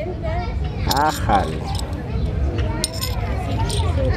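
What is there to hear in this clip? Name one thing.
Metal coins clink together in a hand.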